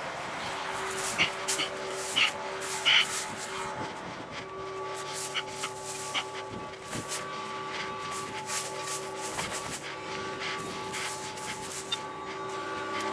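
Dry grass rustles and crackles against a moving machine.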